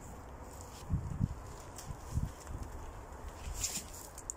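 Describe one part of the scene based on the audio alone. A heavy log thuds and scrapes as it is rolled over the ground.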